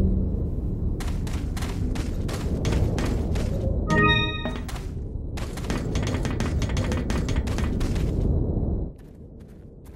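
Footsteps crunch and clank along a rough floor.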